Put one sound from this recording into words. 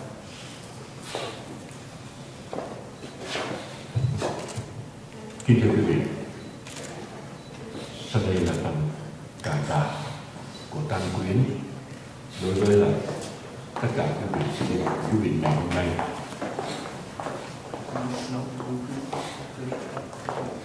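A middle-aged man speaks slowly and solemnly into a microphone, heard over a loudspeaker.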